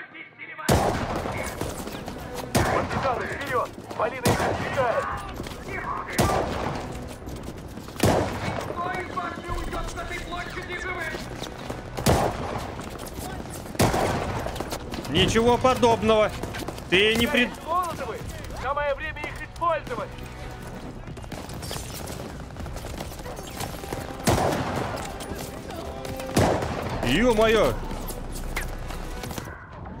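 A man talks through a microphone.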